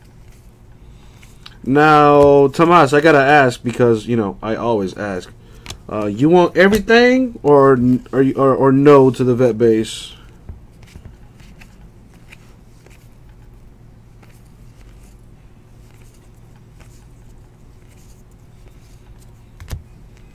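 Trading cards rustle and slide as hands flip through a stack.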